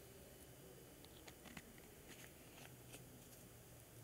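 Small paint jars click and tap against each other.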